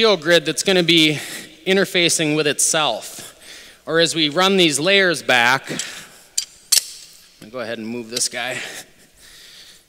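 A man talks calmly into a nearby microphone.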